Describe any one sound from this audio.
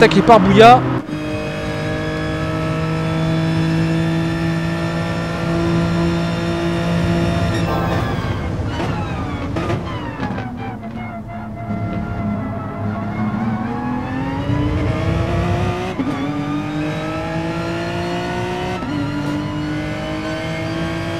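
A racing car engine roars at high revs, drops in pitch as the car slows, then climbs again.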